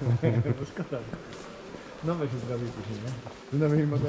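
Visitors' footsteps tap on a hard floor in a large echoing hall.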